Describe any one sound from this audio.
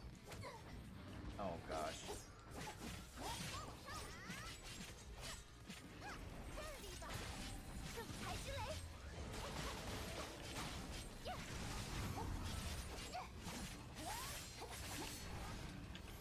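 Swords slash and magical blasts crash in rapid bursts.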